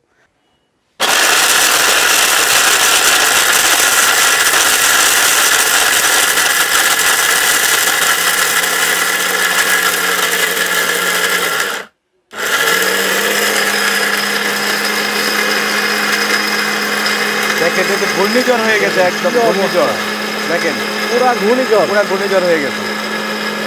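A blender whirs loudly, grinding.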